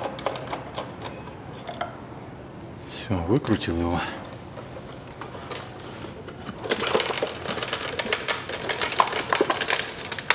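Hard plastic parts click and rattle as they are handled.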